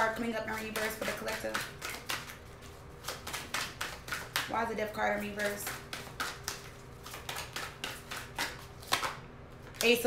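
Playing cards riffle and click as they are shuffled.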